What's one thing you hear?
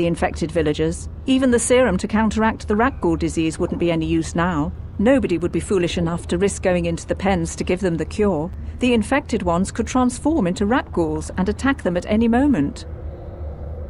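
A woman speaks calmly and at length.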